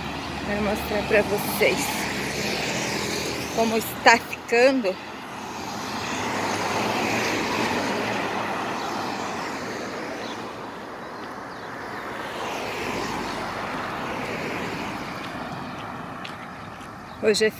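Cars pass by on an asphalt road outdoors.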